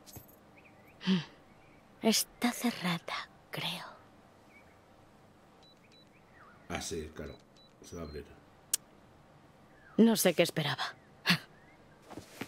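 A young woman murmurs quietly to herself.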